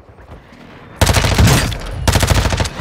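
A rifle fires rapid bursts close by.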